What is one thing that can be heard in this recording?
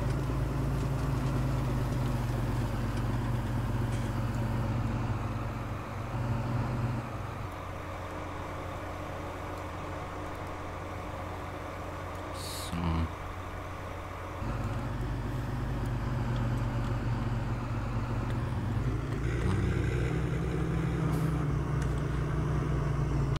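A diesel tractor engine runs under load.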